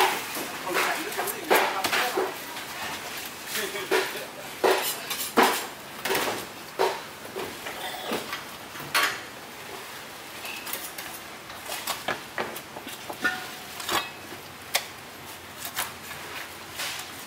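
Meat slaps and thuds on a metal counter.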